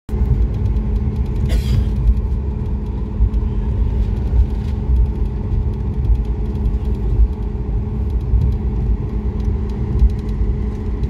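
An airliner cabin rumbles as the aircraft rolls along the ground.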